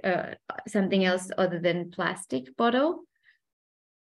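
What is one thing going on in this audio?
A young woman speaks calmly through an online call microphone.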